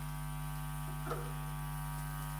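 A needle drops onto a spinning record with a soft thump.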